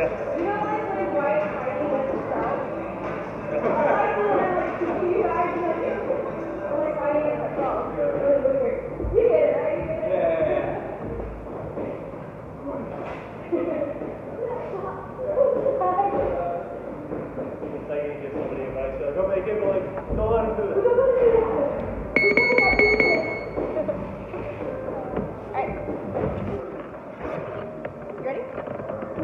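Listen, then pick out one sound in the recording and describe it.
A man talks nearby in a large echoing room.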